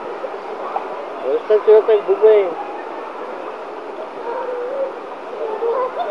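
Water splashes as girls move about.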